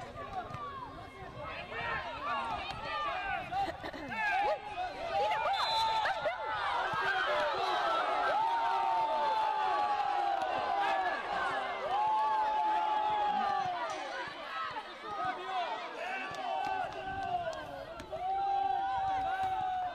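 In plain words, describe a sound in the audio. Young players shout to each other far off across an open pitch.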